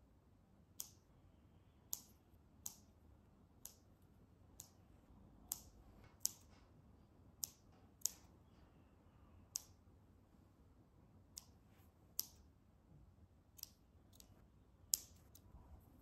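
Scissors snip repeatedly, with sharp clicks.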